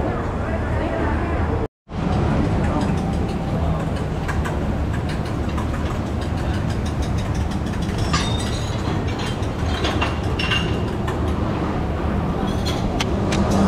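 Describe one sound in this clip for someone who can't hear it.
A crowd murmurs and chatters in a busy indoor hall.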